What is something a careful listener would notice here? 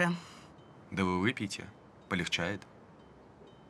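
A young man speaks quietly and close by.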